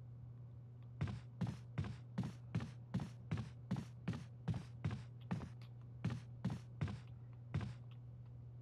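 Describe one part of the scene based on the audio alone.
Footsteps tread steadily across a wooden floor.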